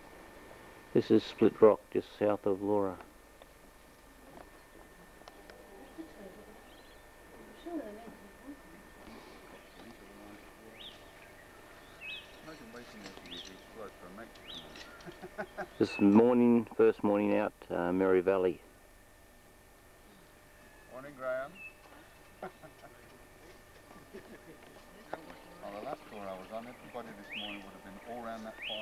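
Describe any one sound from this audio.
A man talks close by in short bursts.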